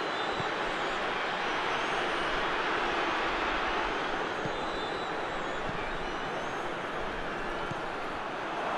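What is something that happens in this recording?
A football is kicked with dull thuds now and then.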